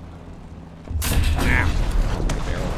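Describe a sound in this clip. A tank cannon fires with a loud boom that rolls away.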